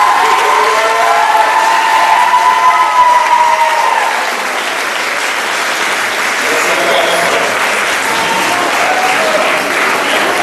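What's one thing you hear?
Young people on stage laugh and cheer.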